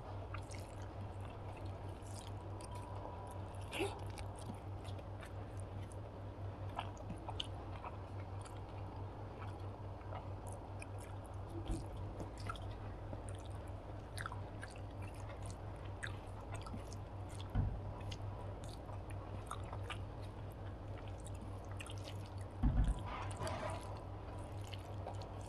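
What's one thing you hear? Fingers squish and mix rice on a plate, close to a microphone.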